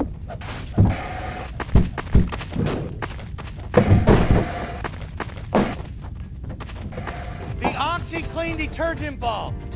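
Shotgun blasts ring out one after another.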